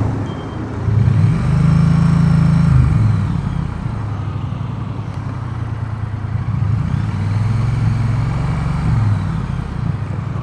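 Cars drive past close by.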